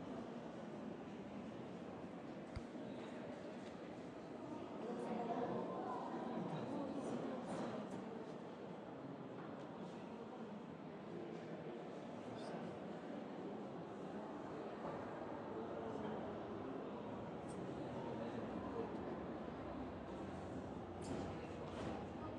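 A crowd of onlookers murmurs and chatters nearby.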